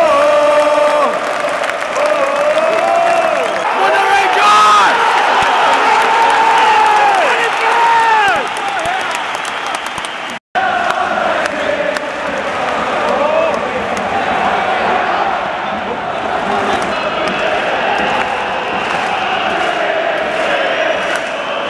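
A huge stadium crowd sings and chants loudly.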